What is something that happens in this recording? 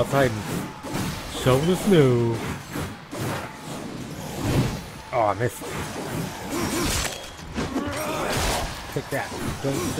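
Ice shatters and crunches.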